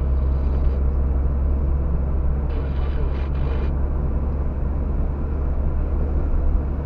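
Tyres roll over a rough road.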